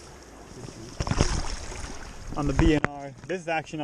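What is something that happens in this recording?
Water splashes as a large fish thrashes in shallow water.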